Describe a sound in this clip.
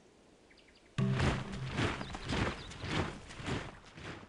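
Game music plays loudly.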